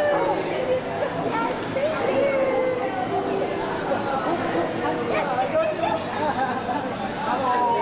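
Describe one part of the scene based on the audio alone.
An elderly woman talks close by.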